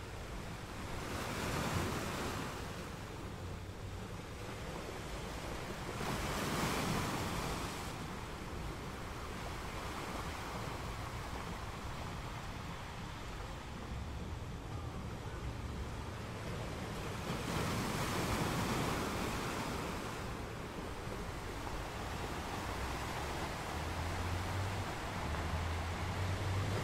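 Waves crash and roar against rocks, rising and falling in surges.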